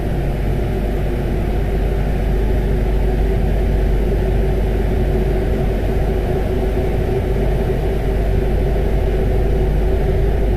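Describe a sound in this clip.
Train wheels whine steadily on the rails.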